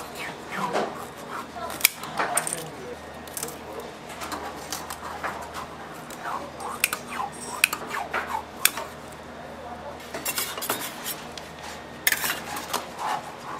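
A metal scraper scrapes and taps against a metal tray.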